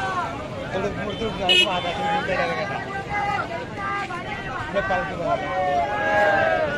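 A crowd of men and women chatters close by, outdoors.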